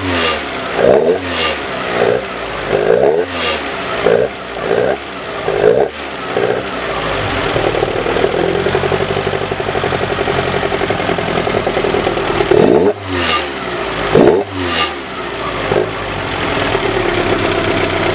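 A car engine idles close by and revs up sharply again and again.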